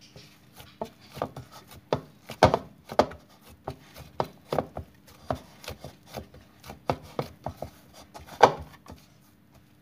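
Wet hands squish and slap soft dough close by.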